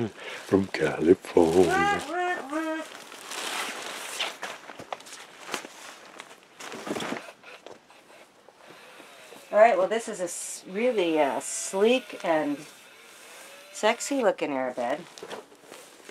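Fabric and plastic rustle as bedding is handled.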